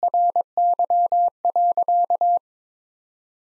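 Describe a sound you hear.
A telegraph key beeps out rapid Morse code tones.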